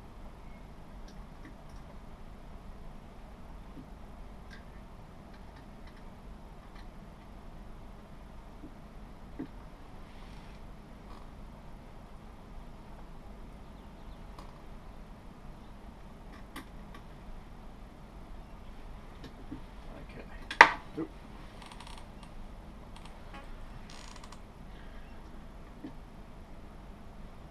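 Small metal parts click and tap softly.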